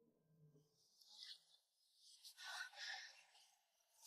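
Fabric rustles as someone shifts on bedding.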